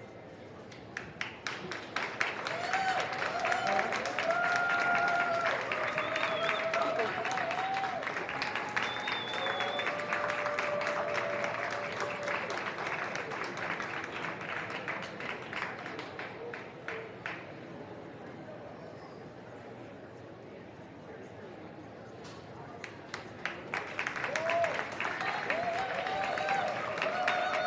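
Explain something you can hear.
A crowd claps in a large echoing hall.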